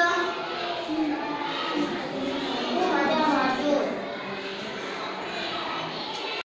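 A young girl answers in a clear child's voice.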